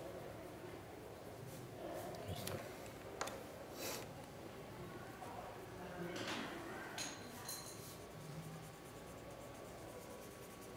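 A pencil shades on paper.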